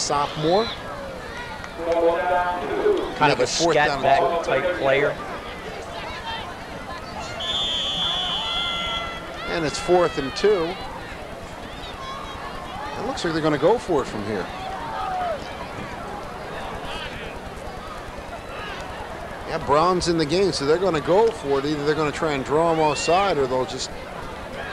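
Men on the sidelines talk and call out outdoors.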